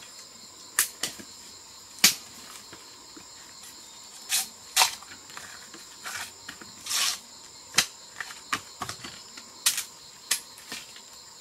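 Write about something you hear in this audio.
Dry bamboo stalks snap and crack as a person breaks them.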